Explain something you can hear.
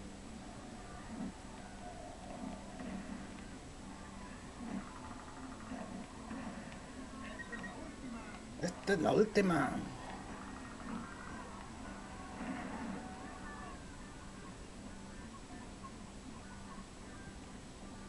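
Game music plays quietly through a television speaker.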